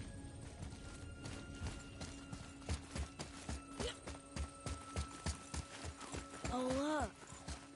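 Footsteps run quickly up stone steps.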